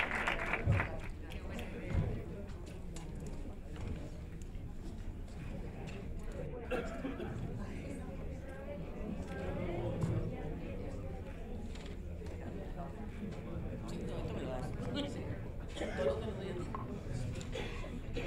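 People in an audience murmur and talk quietly.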